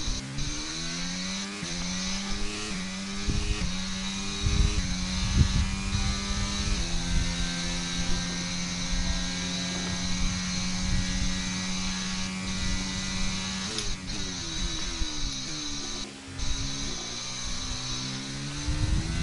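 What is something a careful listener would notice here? A racing car engine screams, rising in pitch through each gear and dropping sharply under braking.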